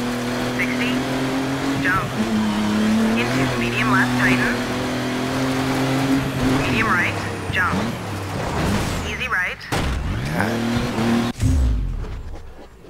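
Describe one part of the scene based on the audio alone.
A rally car engine roars and revs as it races along.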